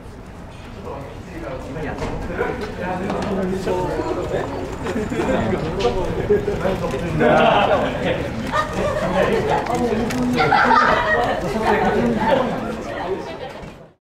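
Several young women chat and laugh nearby, outdoors.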